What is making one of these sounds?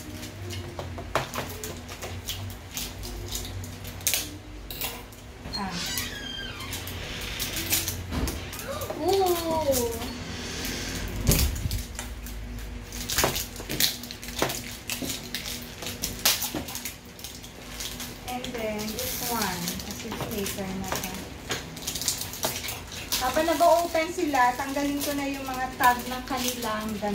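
Toys click and pop with small taps.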